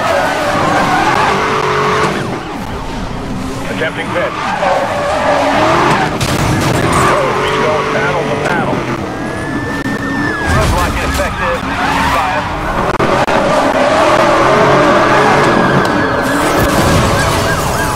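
A sports car engine roars and revs at high speed.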